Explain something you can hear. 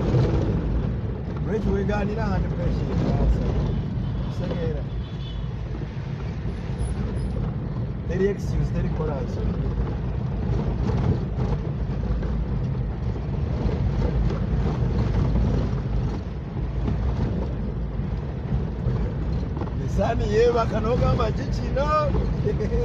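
A car body rattles and bumps over an uneven road.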